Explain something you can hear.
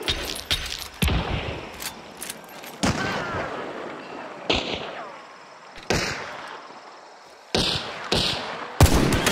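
Rifle shots crack and echo outdoors.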